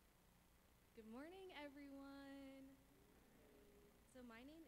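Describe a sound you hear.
Another young woman speaks through a microphone in a drawn-out voice.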